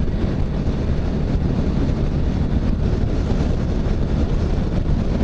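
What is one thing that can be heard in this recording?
A motorcycle engine drones steadily up close.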